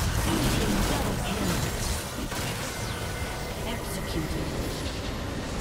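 Video game battle sounds of clashing blows and spell effects ring out.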